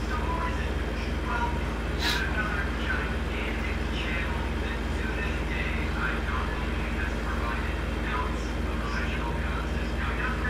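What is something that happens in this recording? A truck engine hums with a steady low drone.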